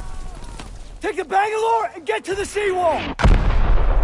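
A young man shouts urgently up close.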